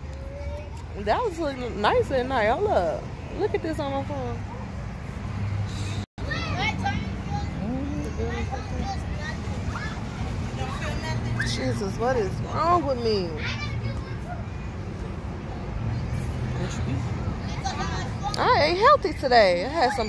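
Children shout and call out excitedly nearby, outdoors.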